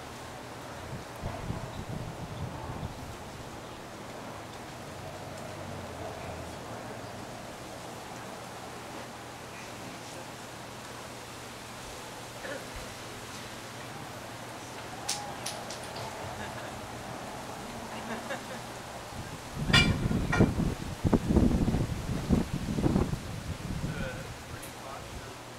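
Wind gusts outdoors.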